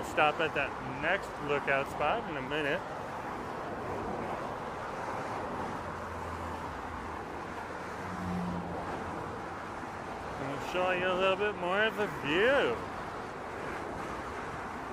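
Car traffic rumbles steadily past close by.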